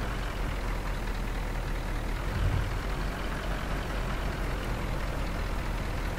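A truck's diesel engine rumbles steadily as it drives slowly.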